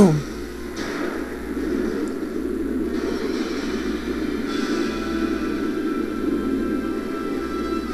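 A fiery blast roars and rumbles.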